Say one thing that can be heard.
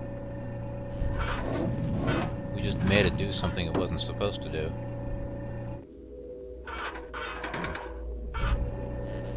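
Small metal feet clank and patter across a floor.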